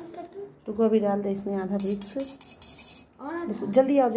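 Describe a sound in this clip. A metal spoon scrapes and clinks against a steel bowl.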